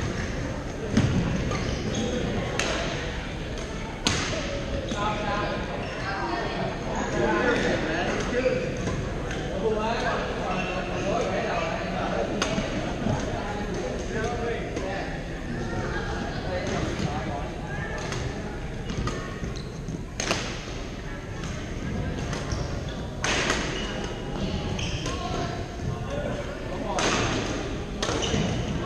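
Sneakers squeak and shuffle on a wooden court.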